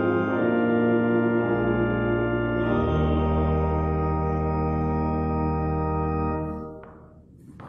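An organ plays sustained chords in an echoing hall.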